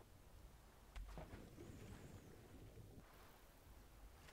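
Water splashes loudly and sloshes.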